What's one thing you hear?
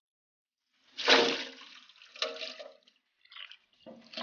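Water splashes in a basin.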